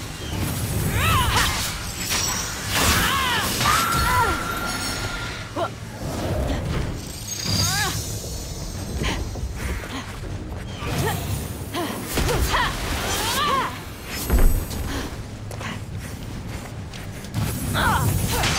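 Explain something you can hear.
Energy blasts zap and crackle.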